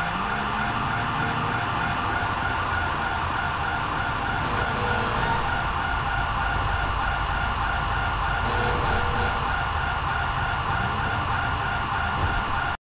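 A van engine idles nearby.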